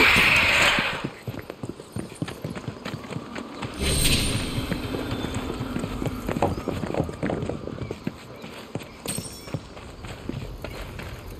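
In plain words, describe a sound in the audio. Footsteps crunch on stone.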